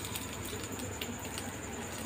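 Rice grains pour into a pan with a soft patter.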